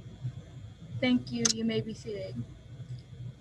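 A young girl speaks calmly into a microphone.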